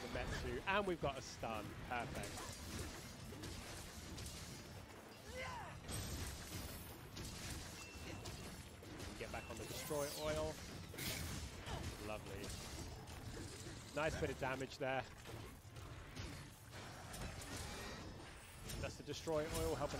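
Weapons clash and strike with sharp hits.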